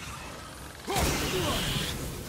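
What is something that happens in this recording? An axe strikes with a sharp crack and a burst of shattering.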